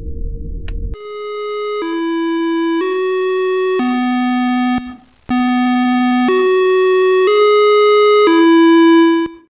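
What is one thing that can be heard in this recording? A bright chime rings out a slow tune of clear, ringing notes.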